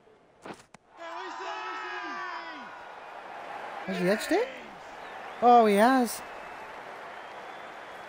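A crowd cheers loudly in a stadium.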